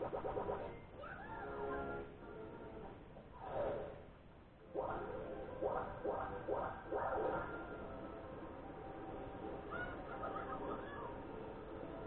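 Bright game sound effects chime and jingle through a television loudspeaker.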